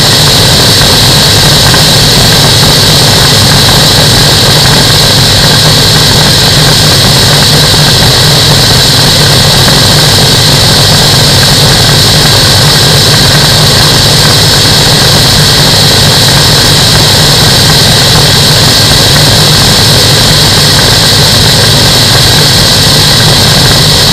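A small aircraft engine drones loudly and steadily close by.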